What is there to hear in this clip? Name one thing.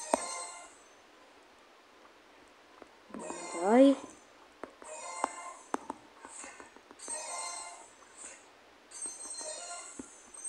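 Bright electronic game chimes and jingles play in short bursts.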